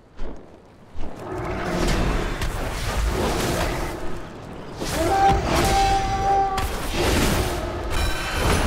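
Weapons clash and spells burst in a noisy fight.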